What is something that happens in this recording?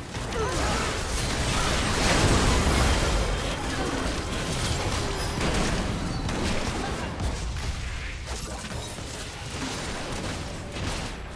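Game spells burst and crackle in a busy fight.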